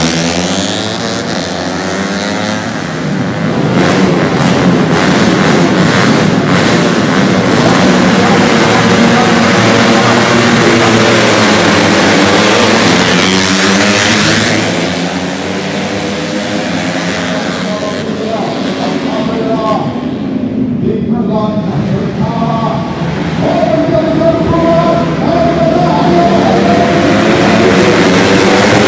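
Several motorcycle engines rev loudly, then roar off at speed and fade into the distance.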